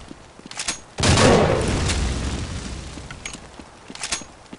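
A loud explosion booms and slowly rumbles away.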